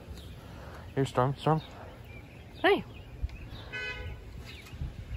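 A small dog barks sharply close by.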